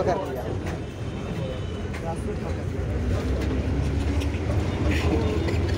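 A bus engine rumbles steadily from inside the moving bus.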